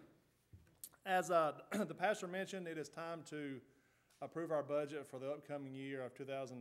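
A man speaks calmly into a microphone, heard over loudspeakers in an echoing hall.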